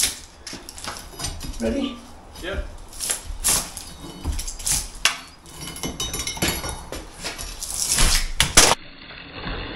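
A metal bar scrapes and knocks against brickwork.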